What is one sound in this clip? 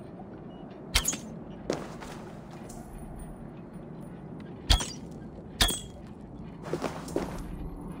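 Hands grip stone with sharp knocks while climbing.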